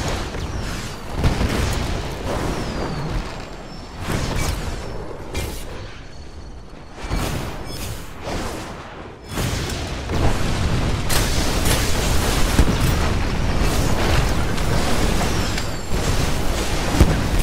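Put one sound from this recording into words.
Magic blasts crackle and burst in a game battle.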